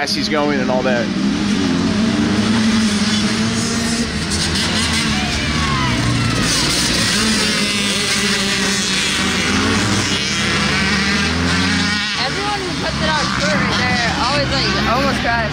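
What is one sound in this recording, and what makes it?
Dirt bike engines rev and whine, rising and falling in pitch.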